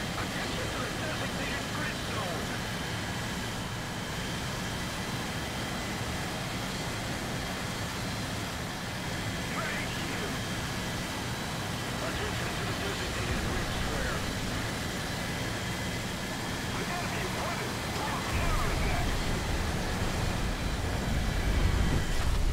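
A propeller plane's engine drones steadily and grows louder near the end.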